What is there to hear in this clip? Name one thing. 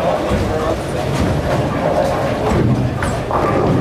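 A bowling ball thuds onto a lane as it is released.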